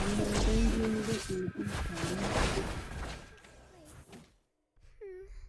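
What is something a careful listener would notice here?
Game sound effects of spells and hits burst and whoosh.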